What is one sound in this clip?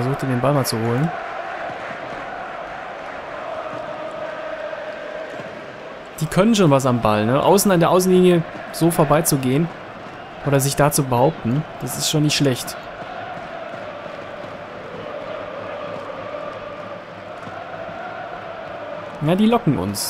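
A large crowd murmurs and chants steadily in a stadium.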